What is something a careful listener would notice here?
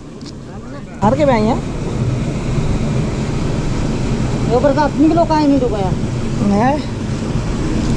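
A man talks loudly and with animation nearby.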